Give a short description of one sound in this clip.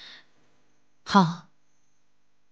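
A woman answers briefly and quietly.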